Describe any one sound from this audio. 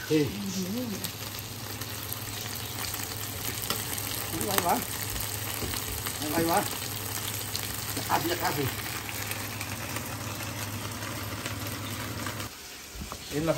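Chicken sizzles in a hot frying pan.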